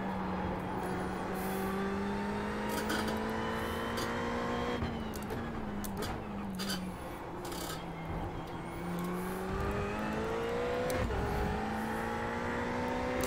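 A race car engine revs high and shifts through gears.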